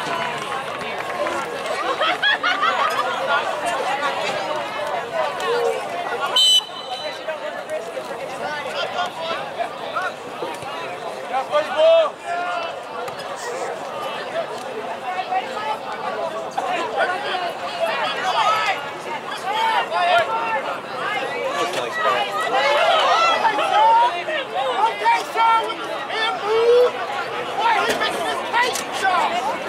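A crowd of spectators and players shouts and calls out across an open field outdoors.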